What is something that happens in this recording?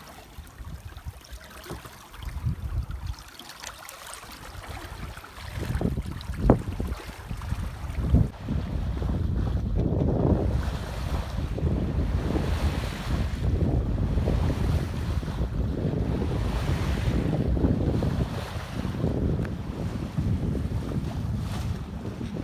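Wind blows hard and rumbles across the microphone outdoors.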